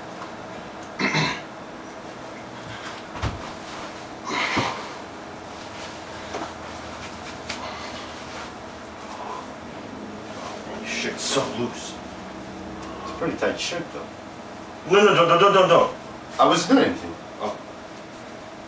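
Young men laugh and shout nearby.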